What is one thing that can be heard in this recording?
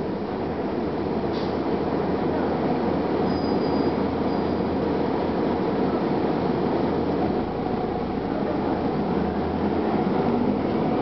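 Tyres roll on the road with a steady noisy hum.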